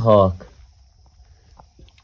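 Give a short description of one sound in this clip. A metal spoon clinks against a steel plate.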